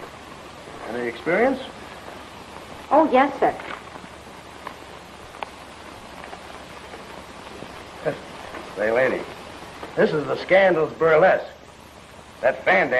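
A woman speaks, close by.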